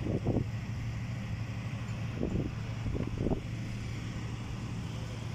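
A crane's diesel engine idles with a steady low rumble.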